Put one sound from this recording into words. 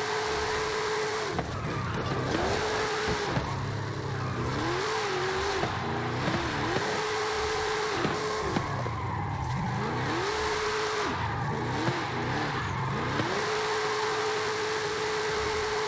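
Tyres screech on the road surface.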